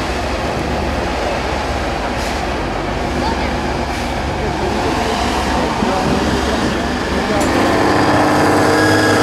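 A heavy truck engine roars and labours loudly, growing louder toward the end.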